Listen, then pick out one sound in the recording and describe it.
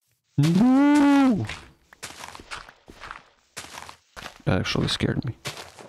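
Blocks of dirt crunch as they are dug out in a game.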